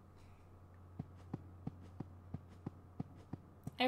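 Footsteps tap quickly at an even pace.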